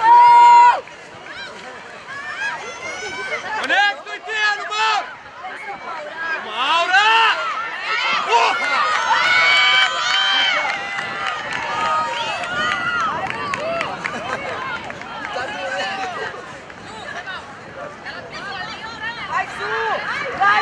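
A crowd of spectators shouts and cheers outdoors, growing louder and then easing off.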